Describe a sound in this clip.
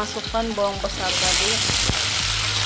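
Chopped onions drop into hot oil and the sizzling grows louder.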